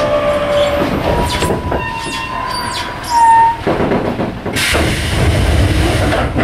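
A train rumbles slowly along the tracks.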